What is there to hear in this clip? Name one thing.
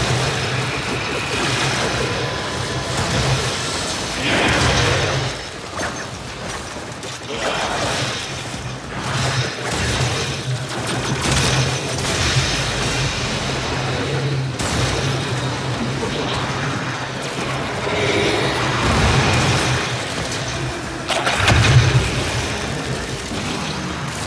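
Weapons fire in a video game.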